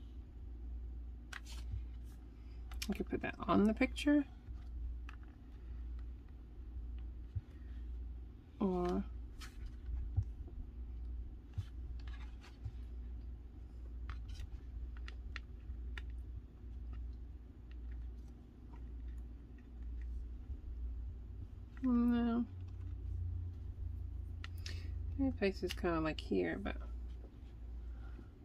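Paper and card pieces rustle and tap as hands arrange them on a page.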